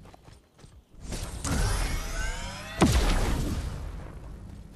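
A rocket whooshes past and explodes with a loud boom.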